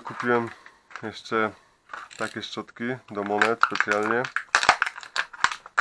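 Small plastic parts click together as they are fitted.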